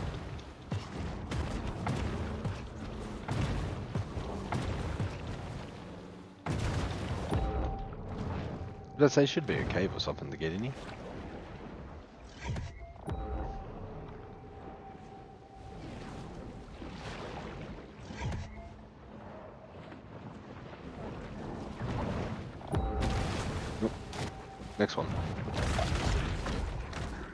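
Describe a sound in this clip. Water rushes and splashes as a large creature swims.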